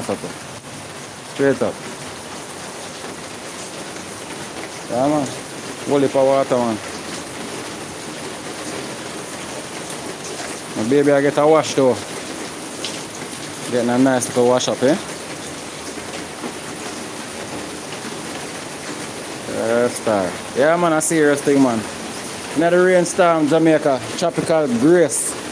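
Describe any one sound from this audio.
Rain falls steadily on grass and paving outdoors.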